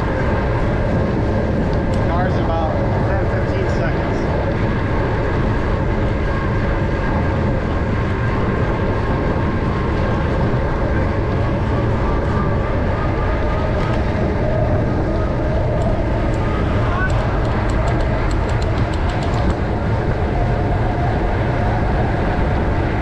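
Wind buffets a microphone steadily outdoors.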